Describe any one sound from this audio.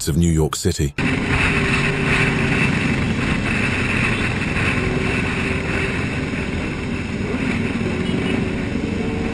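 Motorcycle engines drone steadily.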